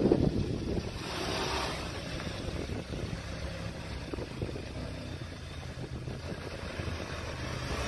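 A car engine hums as the car pulls away and drives slowly off.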